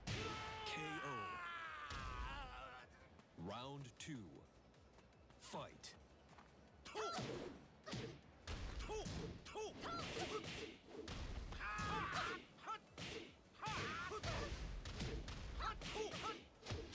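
Punches and kicks land with sharp thuds and whooshes.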